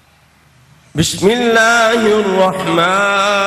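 A man sings loudly into a microphone with a long, sustained melody.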